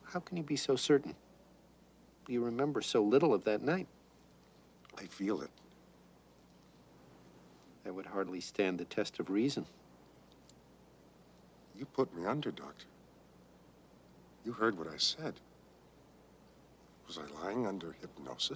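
A man speaks quietly and slowly, in short phrases with pauses, close by.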